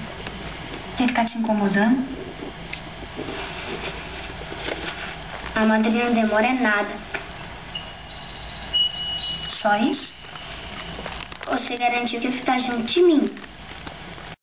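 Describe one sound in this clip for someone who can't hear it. A woman speaks softly and calmly.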